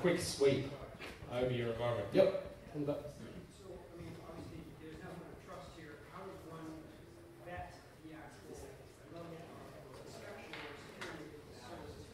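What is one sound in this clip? A man speaks to an audience in a large room, heard from a distance with some echo.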